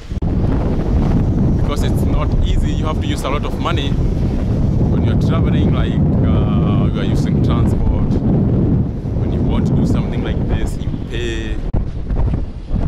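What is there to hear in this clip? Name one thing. A young man talks close up, with animation.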